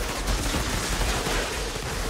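Electric energy crackles and bursts.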